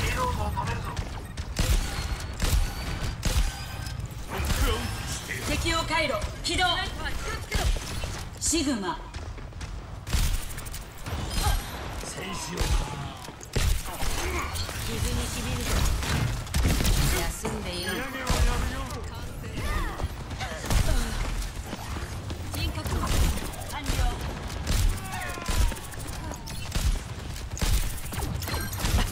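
Guns fire in rapid bursts of sharp shots.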